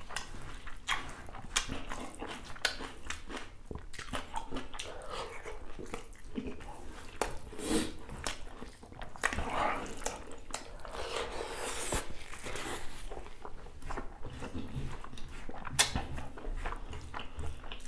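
Fingers crinkle and squish through soft rice.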